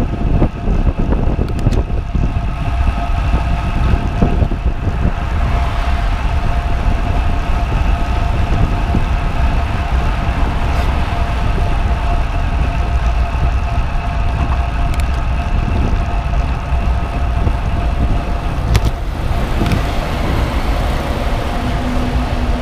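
A bicycle's tyres hum on the road.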